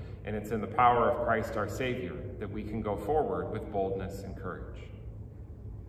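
A middle-aged man reads aloud calmly into a microphone in an echoing room.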